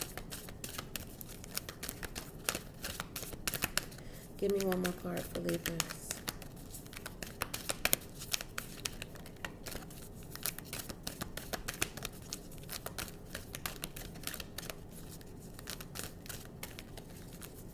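Playing cards riffle and slap as they are shuffled close by.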